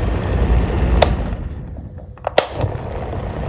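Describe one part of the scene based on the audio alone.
A fan switch clicks.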